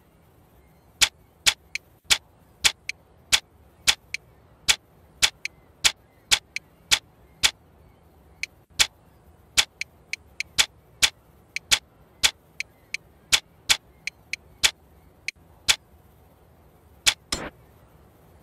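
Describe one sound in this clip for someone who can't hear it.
Sharp menu clicks tick again and again.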